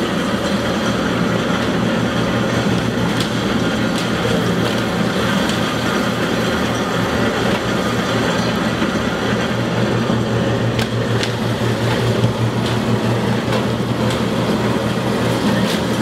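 Grape bunches rustle and tumble as they are pushed into a hopper.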